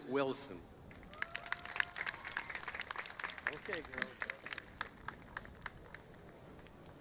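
An audience claps scattered applause outdoors.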